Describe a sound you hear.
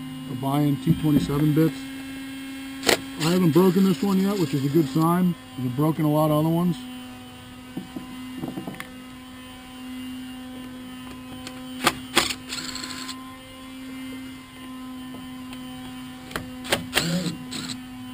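Metal parts click and clank on a chainsaw.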